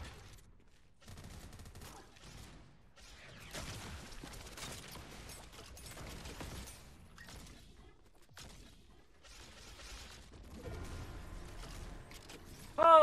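Gunfire crackles from a video game.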